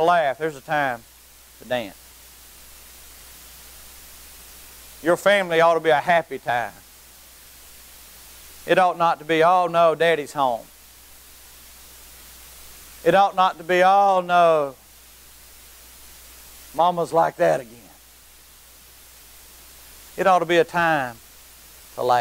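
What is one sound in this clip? A middle-aged man speaks with emphasis through a microphone, pausing between phrases, in a large room with a slight echo.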